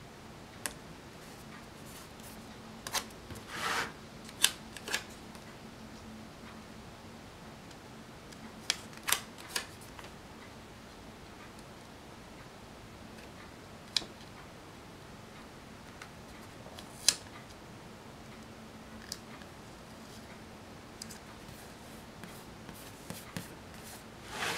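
Sticker paper rustles and crinkles under fingertips.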